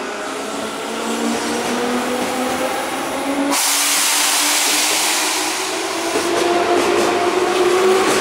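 An electric commuter train pulls away, its traction motors whining and rising in pitch.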